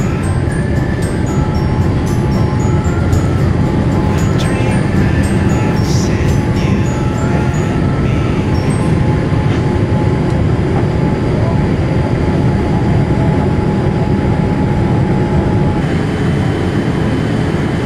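Jet engines roar steadily as an airliner climbs after takeoff.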